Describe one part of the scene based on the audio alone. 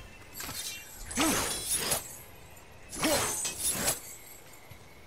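A heavy blow strikes stone with a clang.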